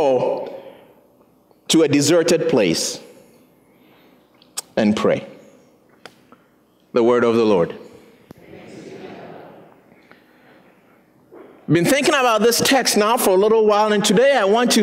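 A middle-aged man speaks through a microphone with animation, with pauses between phrases.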